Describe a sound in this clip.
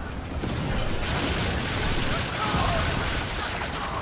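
A cannon fires with a loud booming blast.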